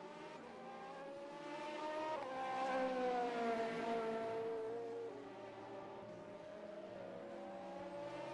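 Racing car engines roar past, rising and falling in pitch as they shift gears.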